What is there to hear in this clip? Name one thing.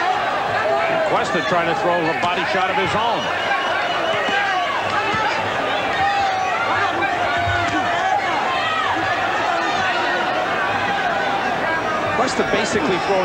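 A large crowd cheers and shouts loudly throughout.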